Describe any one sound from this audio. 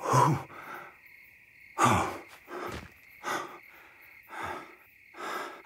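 An elderly man exclaims and chuckles close by.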